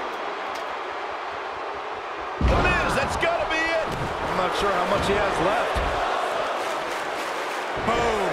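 A crowd cheers in a large arena.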